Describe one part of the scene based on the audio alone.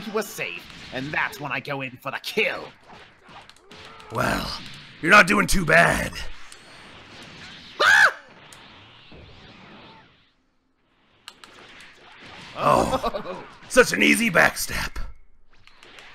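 Punches crack and thud in a fight.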